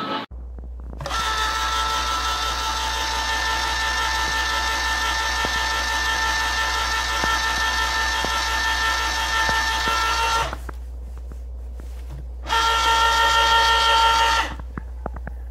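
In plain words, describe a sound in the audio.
An electric can opener whirs steadily as it turns a can.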